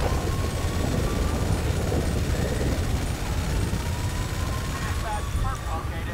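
A rotary machine gun fires a fast, roaring stream of shots.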